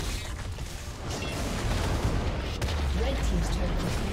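A tower crumbles with a heavy crash.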